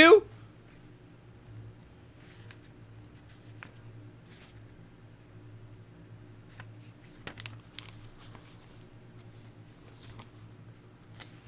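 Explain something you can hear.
Book pages rustle softly as they are turned.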